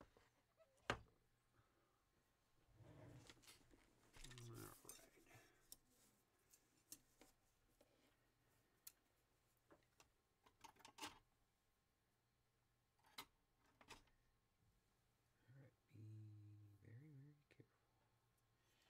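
Small tools click and tap on a workbench.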